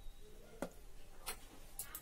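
A young woman gulps a drink.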